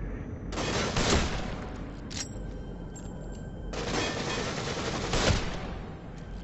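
Gunshots ring out sharply.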